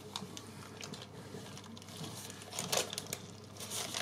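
Baking paper crinkles as hands lift it.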